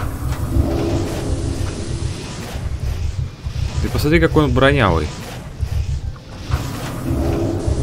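A fire spell whooshes and crackles.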